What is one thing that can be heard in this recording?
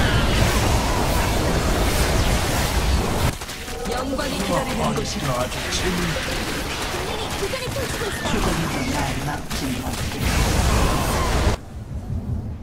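Loud blasts and explosions crash in a fierce battle.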